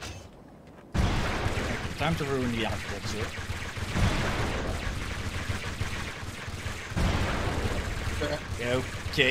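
Gunfire crackles steadily.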